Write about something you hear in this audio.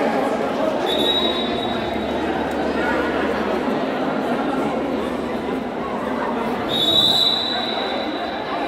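Players' shoes squeak on the court.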